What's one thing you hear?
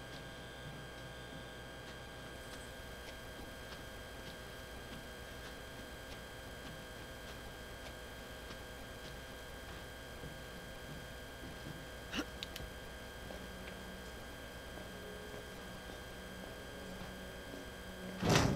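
Footsteps tread slowly over a gritty floor.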